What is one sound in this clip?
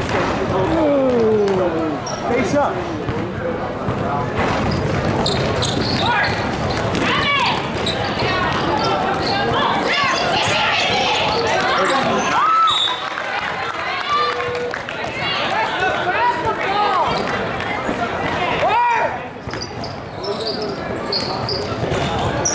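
Spectators chatter in a large echoing hall.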